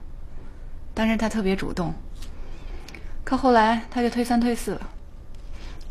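A middle-aged woman speaks steadily, close by.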